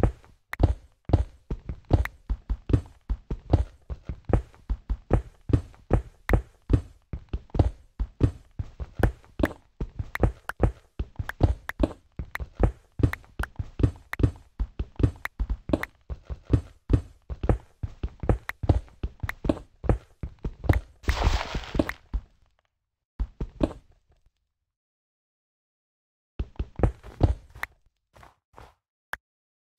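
Blocks crack and break in quick, rapid knocks.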